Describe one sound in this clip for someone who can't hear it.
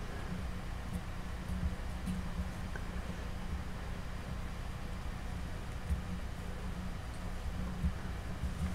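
Fingers softly tap and rub on a small clay figure.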